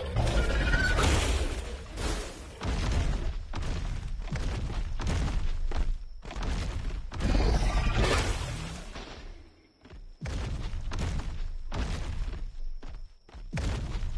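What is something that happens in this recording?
A large beast's heavy footsteps thud on the ground.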